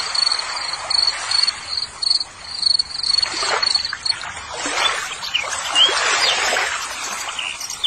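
Water splashes and sloshes as a hand stirs it in a bucket.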